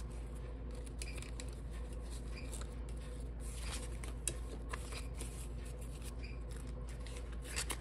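Paper banknotes rustle and crinkle close by as they are handled.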